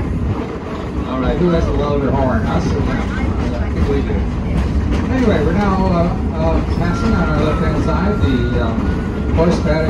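Adults chatter nearby.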